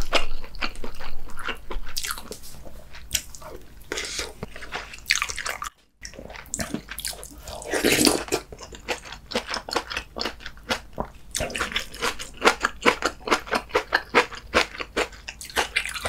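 A man chews and slurps noodles loudly, close to a microphone.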